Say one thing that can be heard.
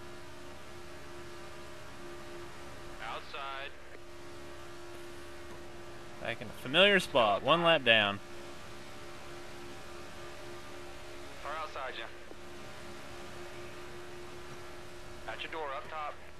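Race car engines roar steadily at high speed.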